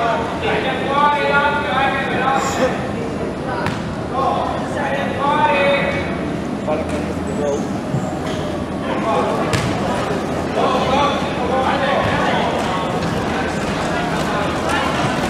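Players and people courtside shout and call out in a large echoing hall.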